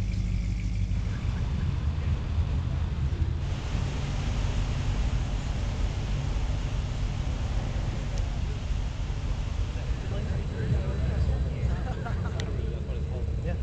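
Another car engine rumbles close by.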